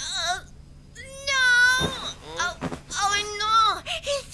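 A young girl speaks in a high, startled voice.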